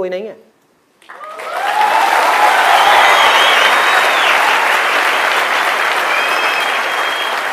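A large audience claps and cheers.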